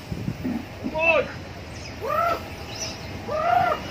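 A baby monkey squeaks in high, short cries.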